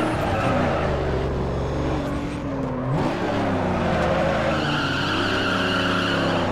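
A car engine roars and revs up and down.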